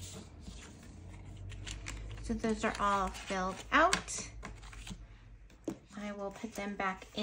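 Paper bills rustle and slide as they are handled.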